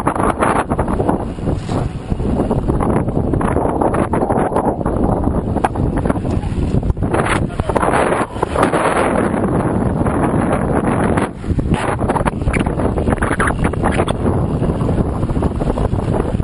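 Strong wind buffets a microphone outdoors.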